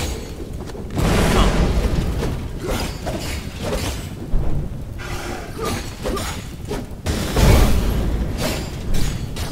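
Heavy blows land with deep thuds.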